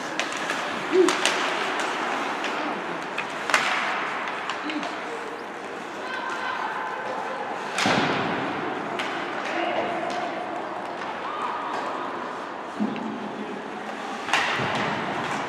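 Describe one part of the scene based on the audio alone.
Hockey sticks clack sharply against a puck.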